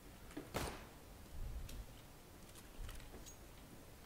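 A pistol clicks and rattles as it is handled.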